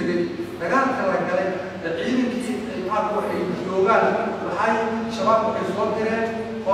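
A man speaks with animation in an echoing room.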